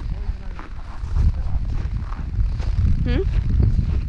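Boots crunch on packed snow.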